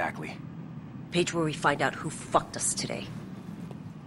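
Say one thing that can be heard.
A woman answers in a firm, clear voice.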